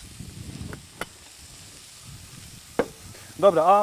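A spatula scrapes and knocks against a frying pan.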